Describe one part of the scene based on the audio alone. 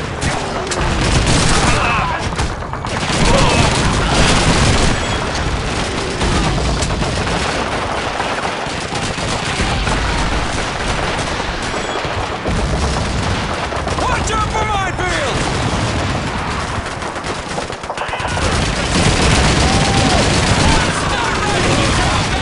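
A rifle fires rapid shots close by.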